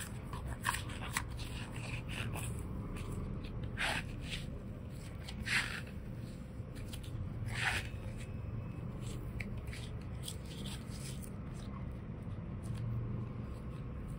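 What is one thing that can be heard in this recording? Soft dough squishes and squelches between fingers.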